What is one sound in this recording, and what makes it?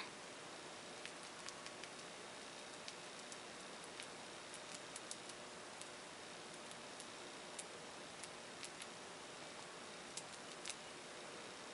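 A stiff brush dabs softly against glass.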